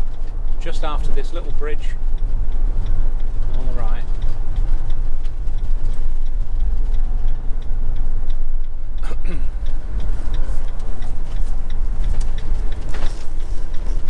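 A vehicle's engine rumbles steadily while driving along a road.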